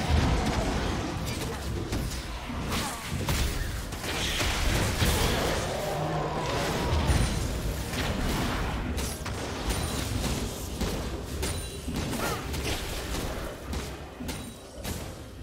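Spell blasts and sword clashes crackle in a fast fight.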